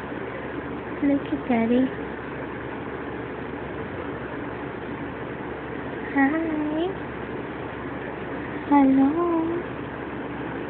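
A newborn baby whimpers softly in short cries.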